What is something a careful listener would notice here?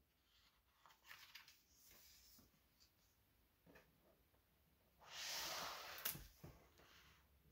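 A book's paper page rustles as it is turned.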